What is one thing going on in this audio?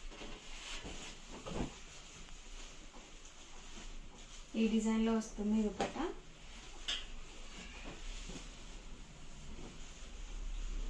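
Cloth rustles and swishes as it is unfolded and laid down.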